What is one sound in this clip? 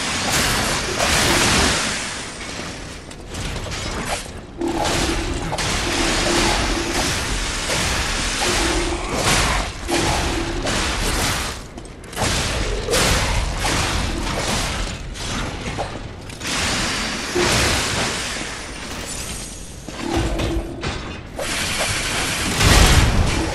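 A heavy machine stomps and whirs.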